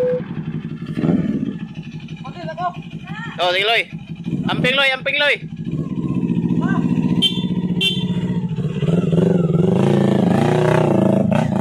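A motorcycle engine runs and revs.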